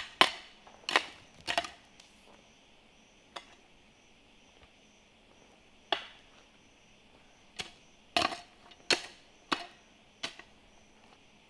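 A hoe strikes and scrapes the ground in sharp, heavy blows.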